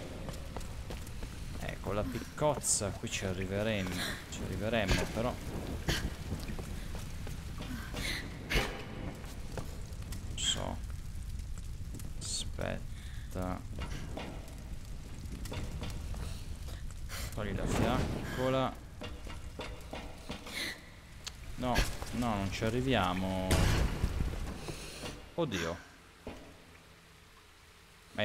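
Footsteps crunch on gravel and wooden planks.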